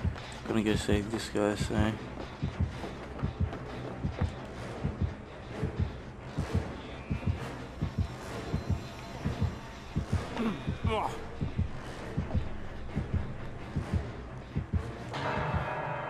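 Footsteps thud quickly across wooden boards.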